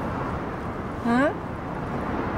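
A young woman answers with a short, questioning hum that rises in pitch.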